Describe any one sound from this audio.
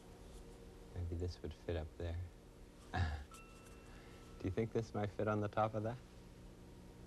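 A middle-aged man speaks calmly and warmly, close to a microphone.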